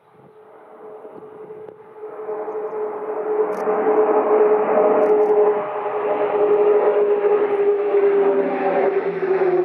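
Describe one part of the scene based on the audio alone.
A propeller aircraft drones overhead, growing steadily louder as it approaches.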